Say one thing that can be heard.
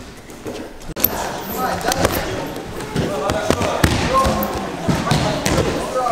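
Wrestlers thud and scuffle on a mat in a large echoing hall.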